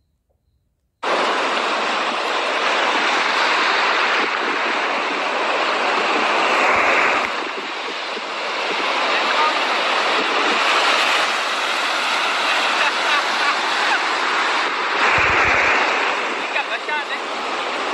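Waves wash and break onto a shore with a steady rushing roar.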